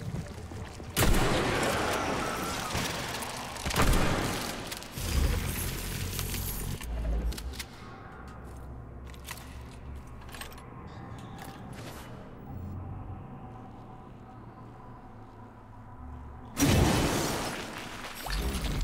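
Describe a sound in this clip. A gun fires loud shots with echoing bursts.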